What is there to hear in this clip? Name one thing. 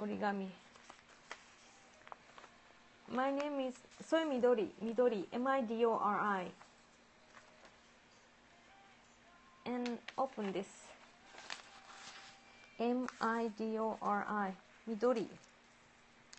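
A woman talks calmly and close to a microphone, in short bursts.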